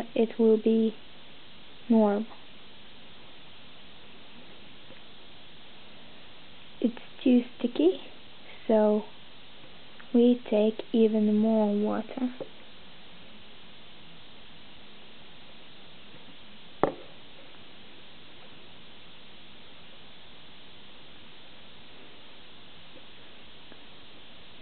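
A small plastic spoon scrapes and taps against a plate.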